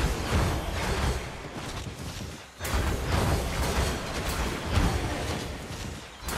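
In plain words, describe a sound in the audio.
Magic blasts whoosh and crackle in a game battle.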